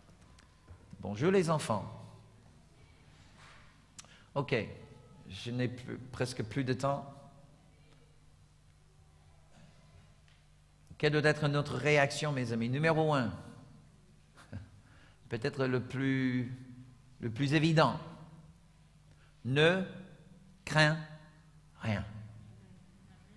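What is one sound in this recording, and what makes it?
A middle-aged man speaks calmly through a microphone, in bursts with pauses.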